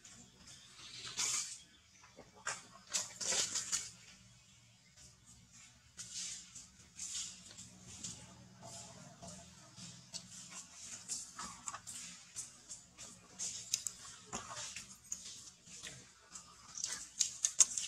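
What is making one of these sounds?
A baby monkey suckles with soft, wet smacking sounds close by.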